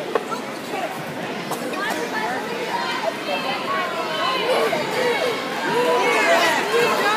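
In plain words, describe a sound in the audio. A large crowd of children and adults chatters and calls out in a big echoing hall.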